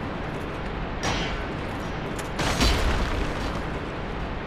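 A sword swings and strikes with a heavy clash.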